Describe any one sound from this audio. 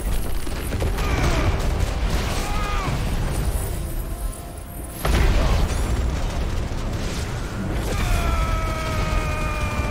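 Magic blasts whoosh and ring with high chimes.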